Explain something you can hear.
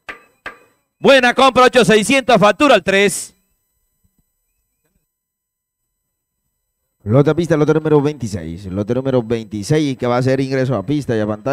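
A man speaks quickly and loudly through a microphone.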